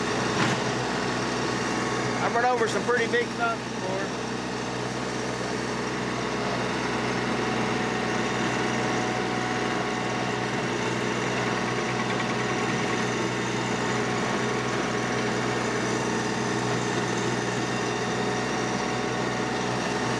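A tiller churns through soil with a grinding rattle.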